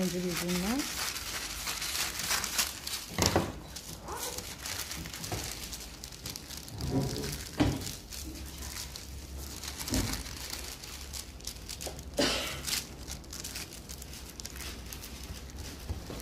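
Sheets of paper rustle and slide under a hand.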